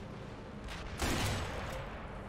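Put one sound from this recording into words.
A rifle fires a single loud shot that echoes.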